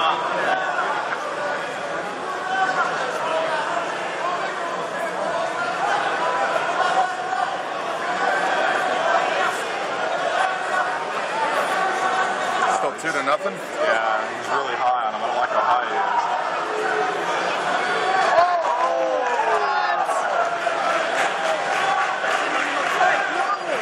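A crowd of spectators murmurs and chatters throughout, in a large echoing hall.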